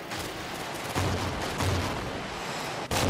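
A missile streaks off with a rushing roar.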